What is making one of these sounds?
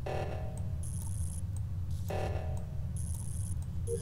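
Short electronic clicks sound as wires snap into place.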